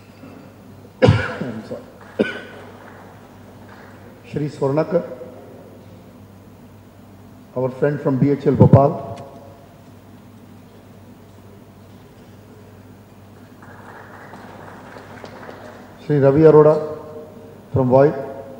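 An elderly man speaks into a microphone in short bursts.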